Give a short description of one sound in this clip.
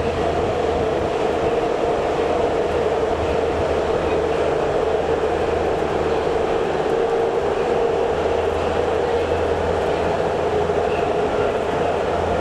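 A subway car rumbles and hums steadily along the tracks.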